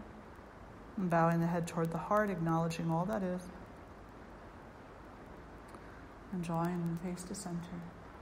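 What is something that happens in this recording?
An elderly woman speaks calmly and slowly, close to a microphone.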